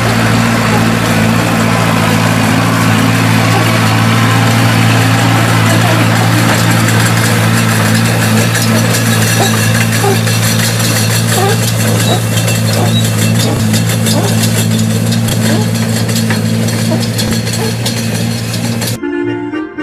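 A hay loader rattles and rustles as it gathers hay.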